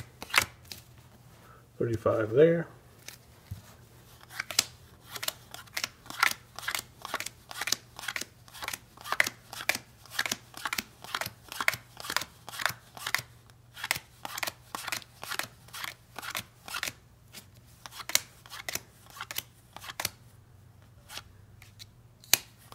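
Cards are dealt one by one onto a table with soft, quick slaps.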